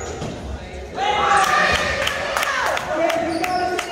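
Young boys shout and cheer loudly in a large echoing hall.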